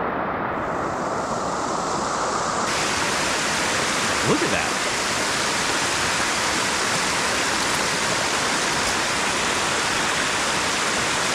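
A waterfall rushes loudly over rocks close by.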